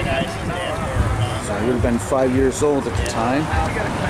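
Men and women chat with one another nearby, outdoors.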